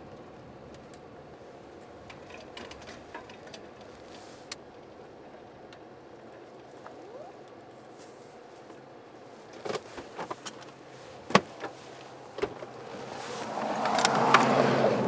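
A car engine idles with a low, steady hum.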